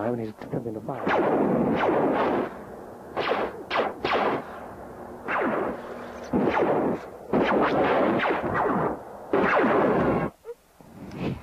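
A loud whooshing blast roars in bursts.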